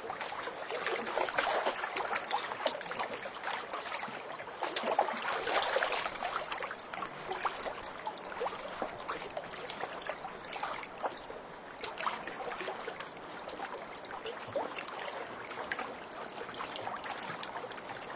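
Rapid gunfire clicks and pops keep going throughout.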